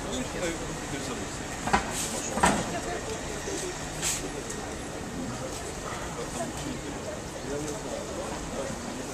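Adults talk in the distance outdoors.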